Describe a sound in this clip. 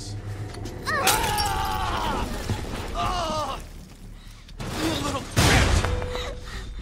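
A heavy object shatters with a loud crash.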